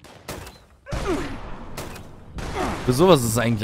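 A heavy gun fires loud blasts.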